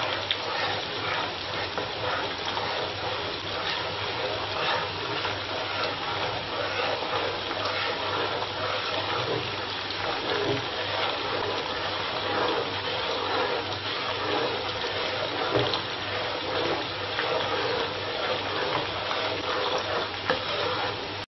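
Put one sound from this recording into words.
A metal ladle scrapes and clinks against a steel wok.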